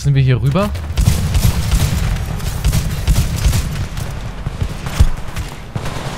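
An automatic rifle fires rapid bursts of shots.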